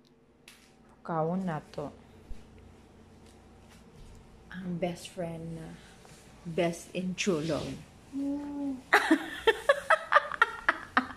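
A young woman talks close by, drowsily.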